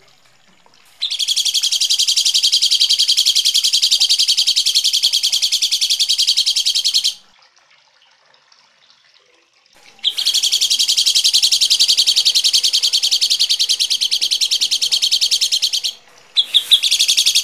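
A small bird chirps in a harsh, rapid, rattling series close by.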